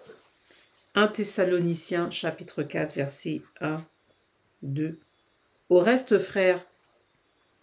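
A woman speaks calmly and close to a microphone, in short phrases with pauses.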